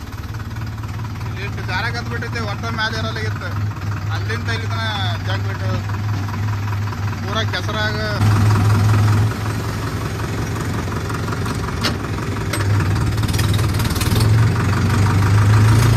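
A tractor engine rumbles steadily up close.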